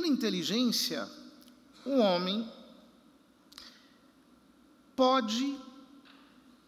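A man chants in short sung phrases through a microphone, echoing in a large hall.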